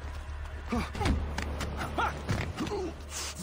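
A heavy punch lands with a dull thud.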